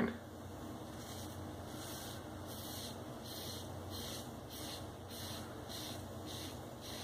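A razor scrapes rhythmically through shaving cream on a scalp.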